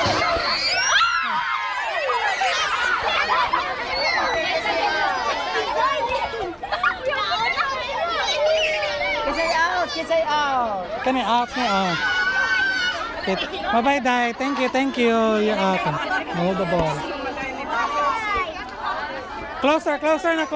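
Children laugh and squeal close by.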